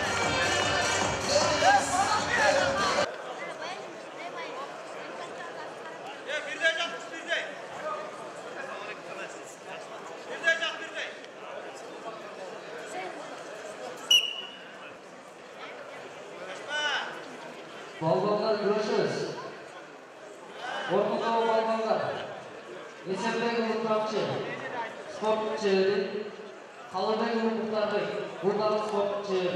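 A large crowd murmurs in an echoing hall.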